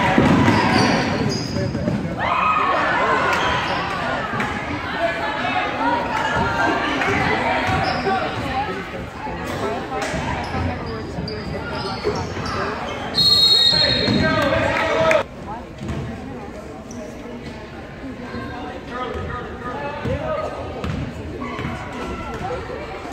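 Spectators chatter and call out in the background.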